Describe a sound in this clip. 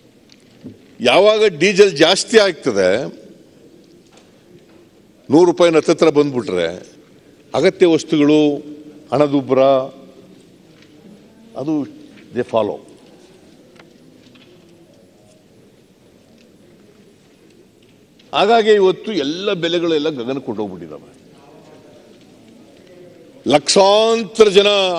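An elderly man speaks forcefully into a microphone, in bursts with pauses.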